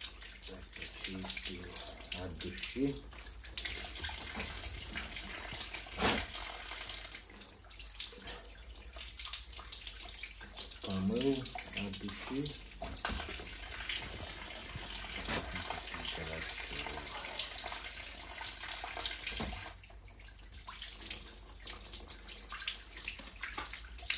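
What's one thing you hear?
Water trickles and splashes from a pipe.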